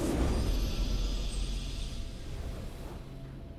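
A triumphant game fanfare sounds and fades away.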